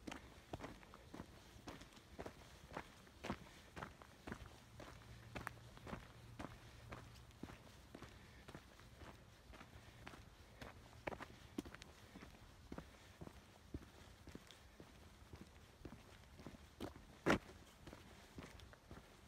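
Footsteps crunch steadily on a gravel trail.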